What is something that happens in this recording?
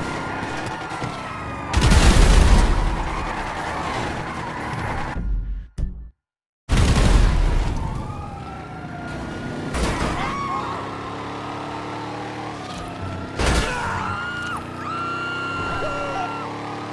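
A car engine roars as a vehicle speeds along.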